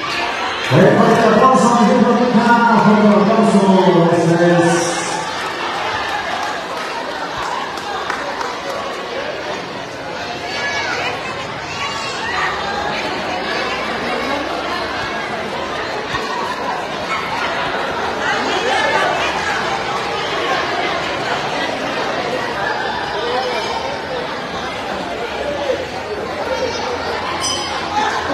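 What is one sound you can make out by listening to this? A crowd of adults and children chatters throughout a large, echoing room.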